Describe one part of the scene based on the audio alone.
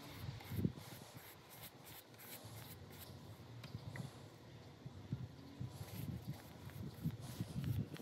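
A paintbrush swishes softly across a wooden board.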